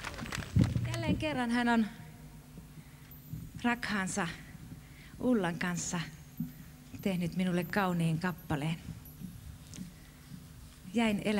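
A woman speaks with animation into a microphone, heard through loudspeakers outdoors.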